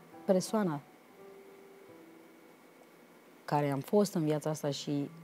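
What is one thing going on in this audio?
A middle-aged woman speaks calmly into a close microphone.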